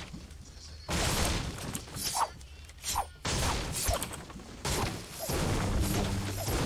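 A pickaxe strikes wood again and again with sharp thuds.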